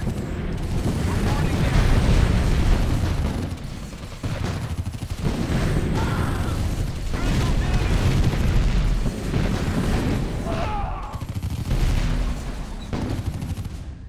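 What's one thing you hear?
Gunfire and explosions boom and crackle in a battle.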